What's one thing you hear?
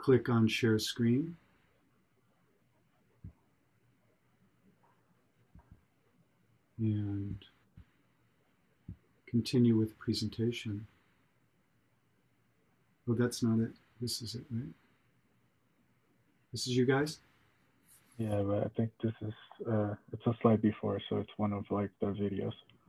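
A man speaks over an online call in short bursts, with pauses between them.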